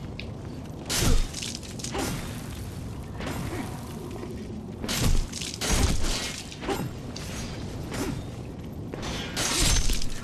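Blades clash and strike in short bursts.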